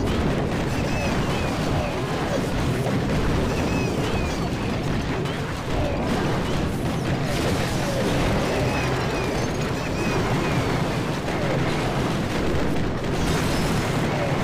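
Cartoonish battle sounds of blasts and clashing crash and clatter without pause.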